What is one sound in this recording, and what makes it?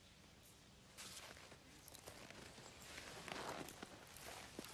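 Boots crunch on packed snow.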